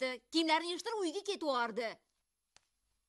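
A young woman speaks nearby in a high, pleading voice.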